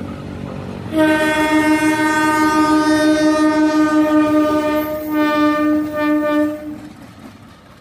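A locomotive horn blares loudly in long blasts.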